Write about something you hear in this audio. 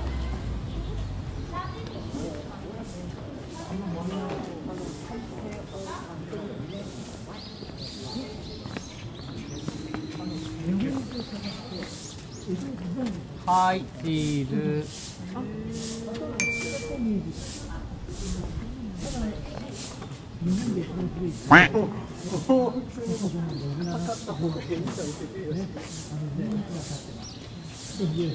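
Men and women chat in a busy crowd outdoors.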